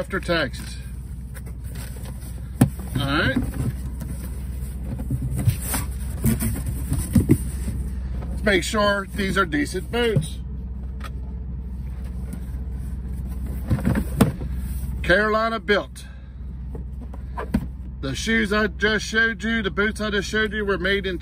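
A cardboard box is handled, its lid scraping and tapping.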